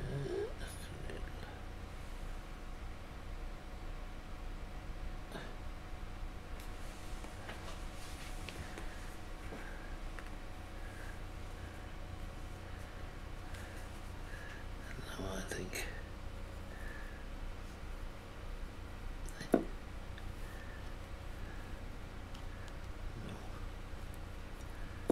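A small paintbrush brushes and dabs softly on a hard surface.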